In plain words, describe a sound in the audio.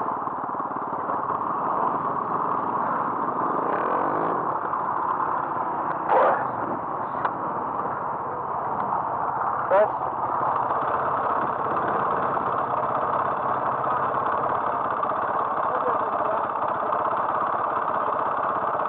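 Quad bike engines rumble and idle nearby.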